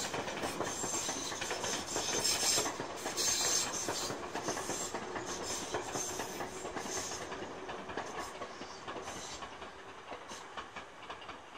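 A train rumbles past and slowly fades away.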